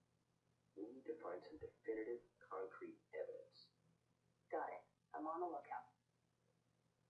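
A woman speaks calmly close to a microphone.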